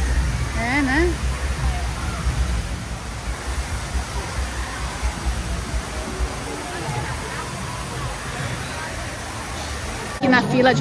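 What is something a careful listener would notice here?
A waterfall splashes steadily in the distance.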